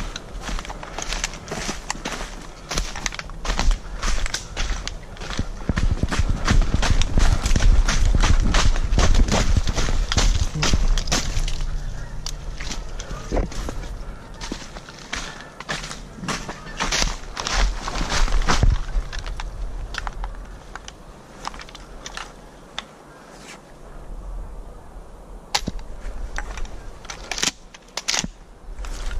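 Footsteps crunch through dry leaves, close by.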